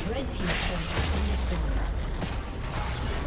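A deep, rumbling explosion booms.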